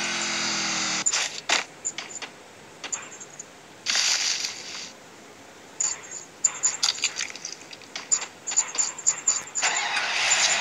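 Footsteps run quickly over grass.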